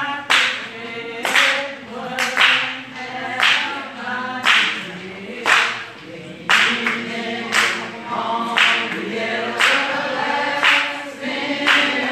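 A crowd claps hands in a steady beat.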